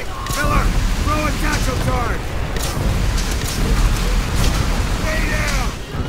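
A flamethrower roars as it sprays fire.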